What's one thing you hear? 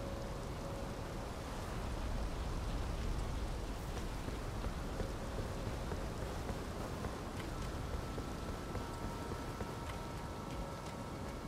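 Footsteps hurry over stone.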